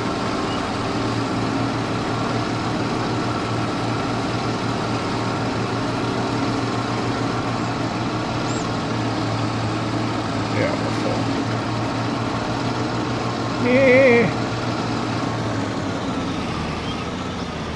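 A forage harvester whirs as it chops crops.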